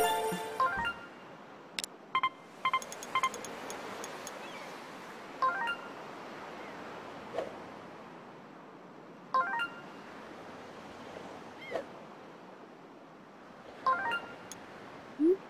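Short electronic chimes and beeps sound now and then.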